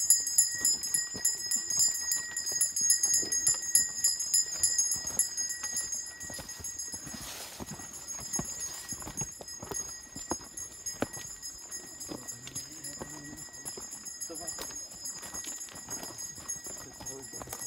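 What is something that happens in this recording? Footsteps crunch and scrape on a rocky path.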